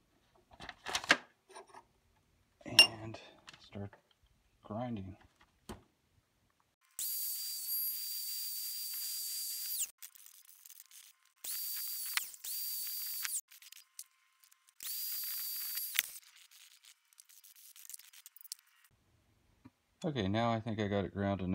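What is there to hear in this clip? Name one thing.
Metal pliers click and clank against a steel vise.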